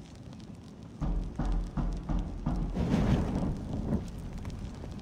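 A fire bursts alight with a loud whoosh.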